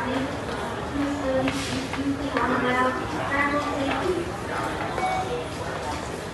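Many footsteps shuffle on a hard floor.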